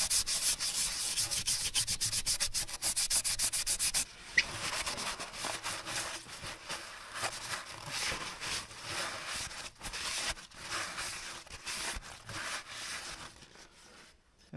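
A rag rubs and wipes against metal.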